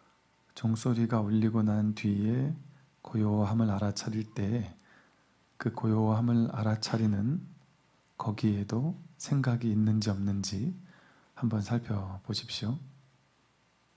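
A man chants in a deep, steady voice.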